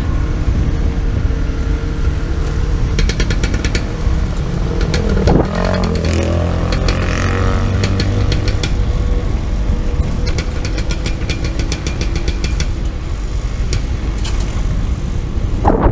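Scooter engines hum steadily close by.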